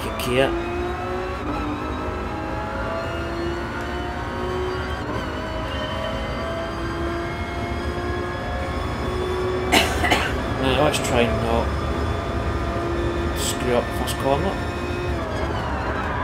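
A racing car engine roars steadily, rising in pitch as it speeds up through the gears.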